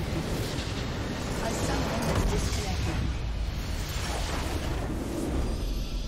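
A structure bursts with a loud, rumbling explosion.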